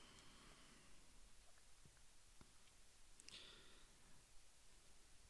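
A small packet rustles and clicks softly close by.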